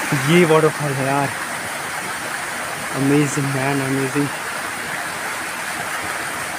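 A waterfall splashes and rushes steadily outdoors.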